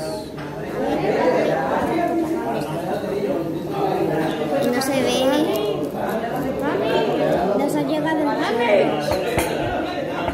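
Young girls talk with animation close by.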